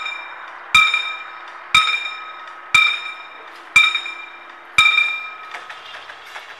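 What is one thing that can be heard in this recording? A level crossing bell rings in loud, evenly spaced strokes.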